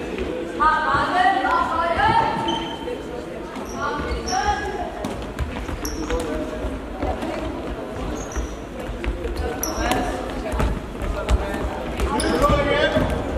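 A ball bounces with dull thuds on a hard floor.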